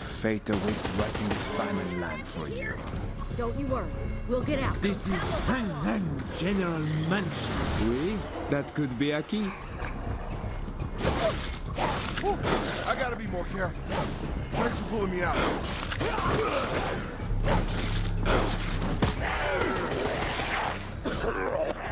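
Heavy blows thud and splatter as zombies attack.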